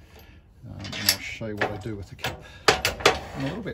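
A small wooden piece clicks and knocks against metal.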